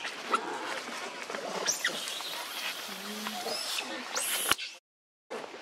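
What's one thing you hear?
A monkey shuffles over dry leaves.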